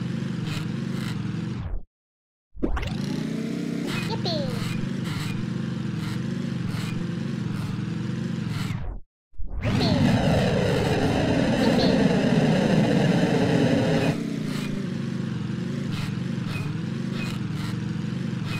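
A small motor engine hums steadily.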